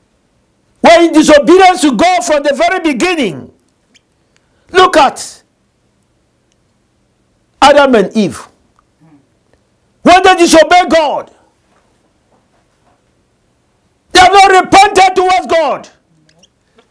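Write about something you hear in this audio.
A man preaches with animation into a close microphone, in bursts with pauses.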